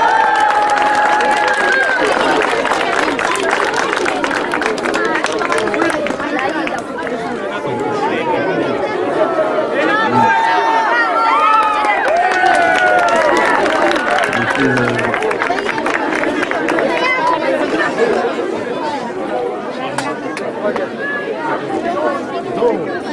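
A crowd of children chatters and calls out loudly outdoors.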